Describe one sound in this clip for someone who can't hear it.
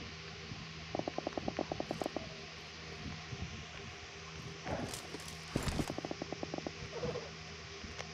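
A large creature's feet patter rapidly over the ground.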